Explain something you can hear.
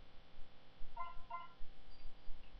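Short electronic menu beeps chime from a small handheld speaker.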